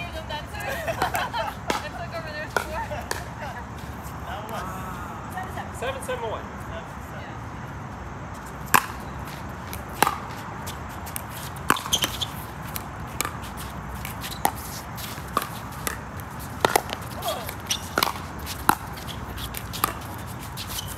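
Paddles hit a plastic ball with sharp hollow pops, back and forth outdoors.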